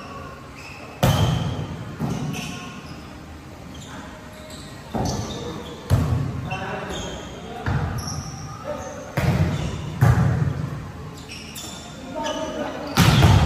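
A volleyball is struck with loud slaps that echo in a large hall.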